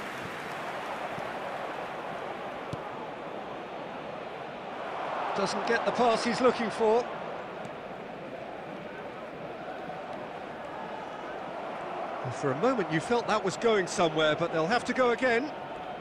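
A large crowd murmurs and roars steadily in a stadium.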